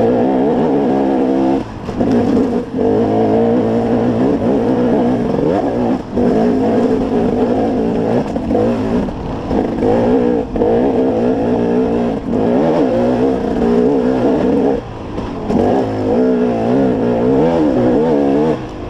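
Tyres crunch over dirt and rocks.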